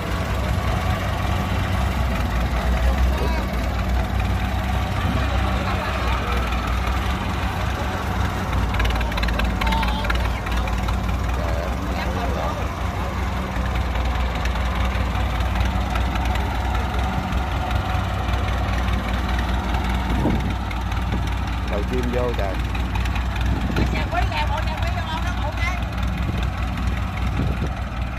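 Tractor tyres churn through wet mud.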